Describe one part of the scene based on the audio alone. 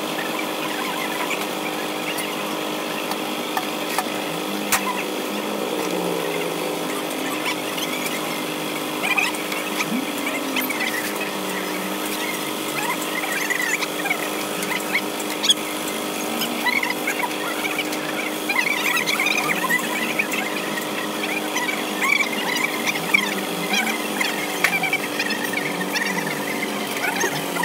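Water splashes and sloshes in a metal basin.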